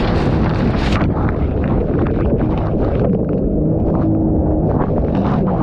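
Spray from rapids crashes over a boat.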